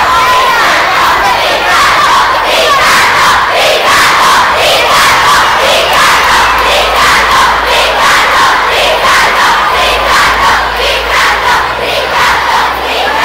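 A large crowd of young girls screams and cheers loudly close by, echoing through a large hall.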